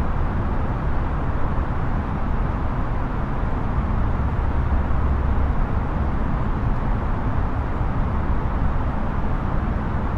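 A steady low roar of jet engines and rushing air fills an aircraft cabin.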